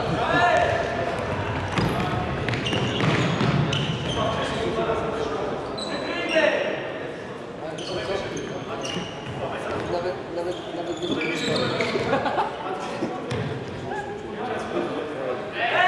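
A ball thumps off a player's foot.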